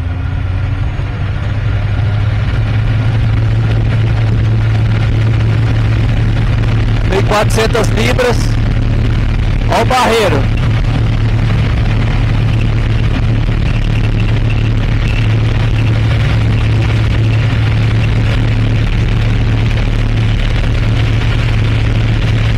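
A small plane's engine drones loudly and steadily from inside the cockpit.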